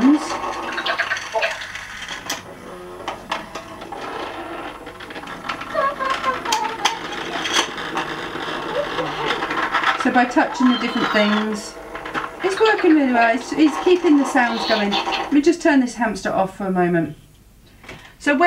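Plastic toy parts click and rattle as they are handled.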